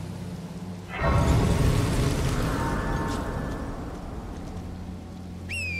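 A shimmering chime swells up and slowly fades.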